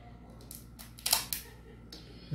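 Scissors snip through tape.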